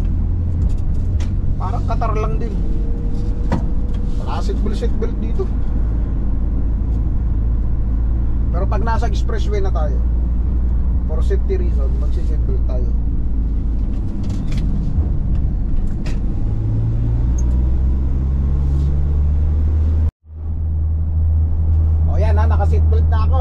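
An engine rumbles steadily inside a moving vehicle.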